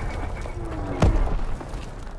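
A gunshot cracks sharply.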